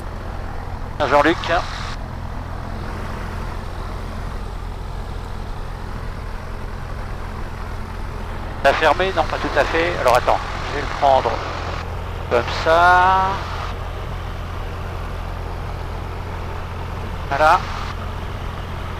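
A man speaks briefly over a headset intercom.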